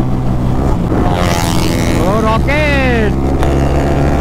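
Another motorcycle revs loudly as it passes close by.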